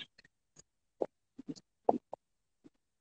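A young man sips a drink.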